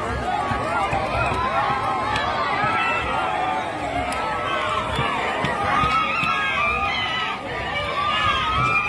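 A crowd of men talk and shout excitedly nearby.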